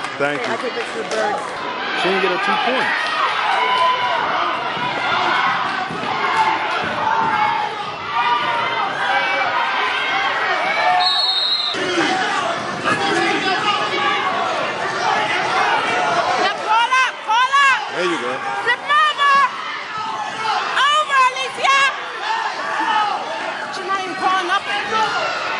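A crowd of adults and children talks and shouts encouragement in an echoing hall.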